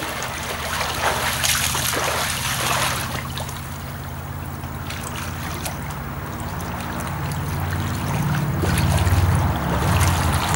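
Water splashes as a swimmer strokes through a pool.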